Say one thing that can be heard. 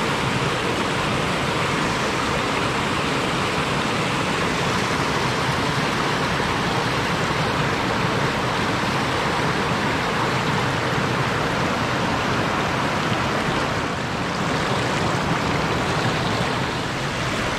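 A river rushes and splashes over rocks close by.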